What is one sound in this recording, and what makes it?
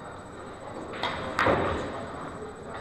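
Pool balls crack sharply apart as a cue ball breaks the rack.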